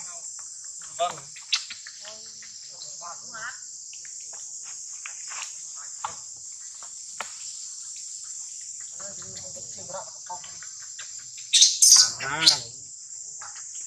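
A baby monkey squeals and cries nearby.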